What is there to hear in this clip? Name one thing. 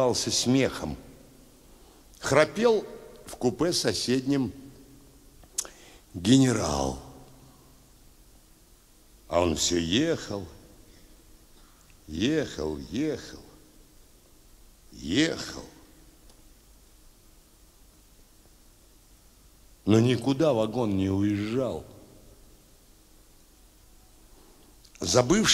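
An elderly man speaks calmly and with pauses into a microphone, heard through loudspeakers in a large hall.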